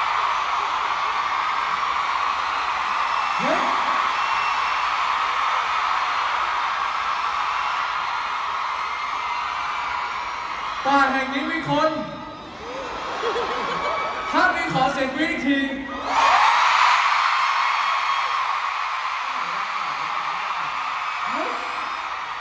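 A large crowd cheers and screams in a big echoing arena.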